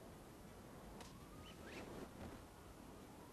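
A parachute snaps open and flaps.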